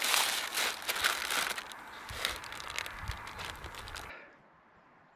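A man bites and chews crusty bread with a crunching sound.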